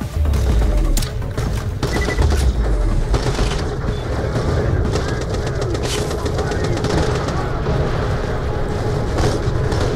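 Gunshots crack out now and then.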